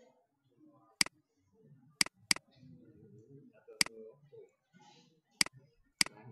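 A computer mouse clicks sharply several times.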